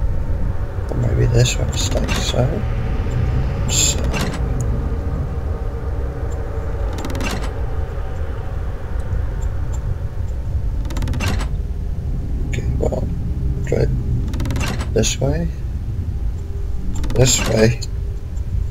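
Heavy levers clunk and scrape into place, one after another.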